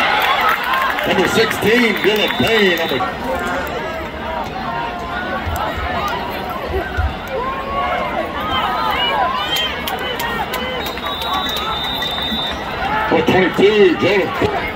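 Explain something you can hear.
Nearby spectators shout loudly.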